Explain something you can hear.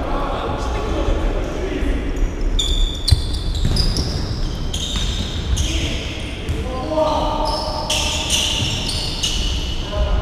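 A ball thuds as it is kicked.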